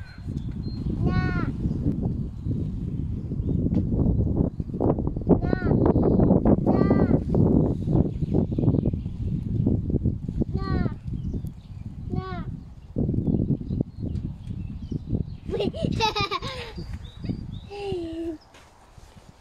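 A small child babbles and squeals close by.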